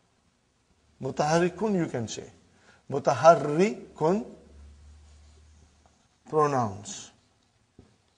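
A middle-aged man speaks calmly through a clip-on microphone.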